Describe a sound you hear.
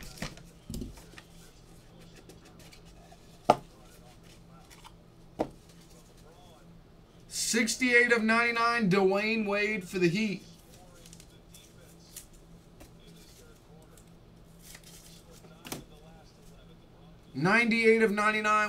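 Cardboard boxes tap and rustle as they are handled.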